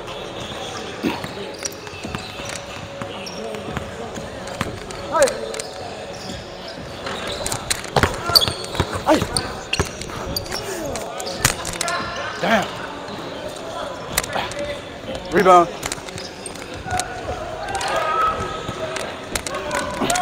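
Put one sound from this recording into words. A basketball bounces with hollow thumps.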